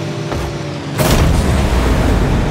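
A loud explosion booms in a video game.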